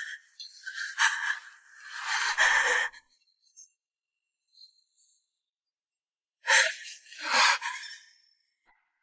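A young woman gasps and breathes in fright, close by.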